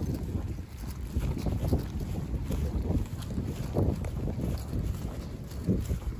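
A bag rustles and swings while being carried.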